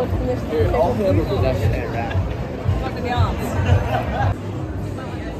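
People chatter and talk in a busy street outdoors.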